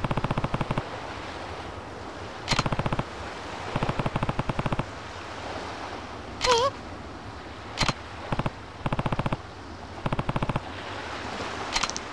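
Short electronic blips tick rapidly in bursts.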